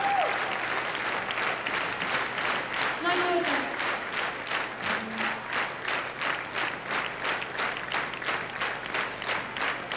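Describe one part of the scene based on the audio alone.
A large crowd claps in a steady, fast rhythm.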